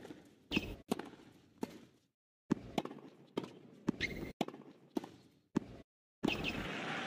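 Tennis rackets strike a ball back and forth in a rally.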